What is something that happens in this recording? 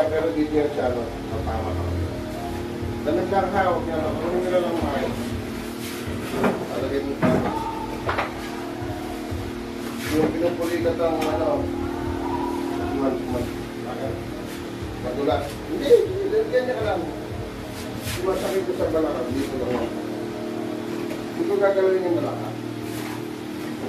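A man talks nearby in a casual voice.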